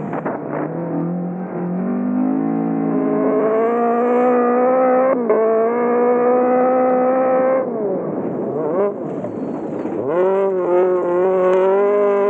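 A rally car engine revs hard, rising and dropping in pitch through the gear changes.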